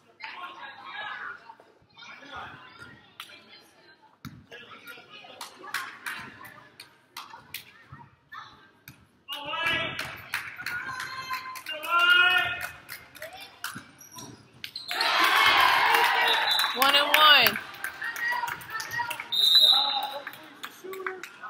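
Sneakers squeak and thud on a wooden court in a large echoing gym.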